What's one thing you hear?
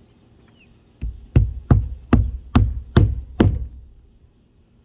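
A hammer strikes a roofing nail several times in quick succession.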